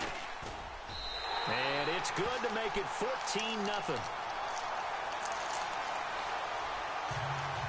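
A crowd cheers loudly in a large stadium.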